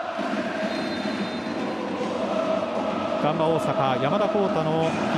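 A stadium crowd murmurs steadily in a large open space.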